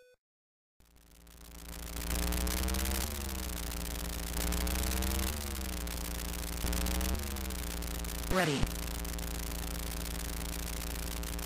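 A retro computer game car engine buzzes and revs up and down.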